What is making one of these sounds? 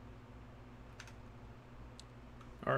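A fire crackles.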